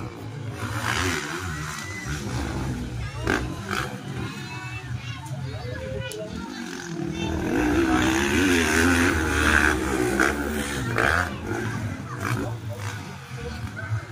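Dirt bike engines rev loudly and whine as they race past.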